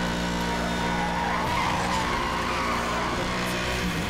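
Tyres screech as a car drifts through a bend.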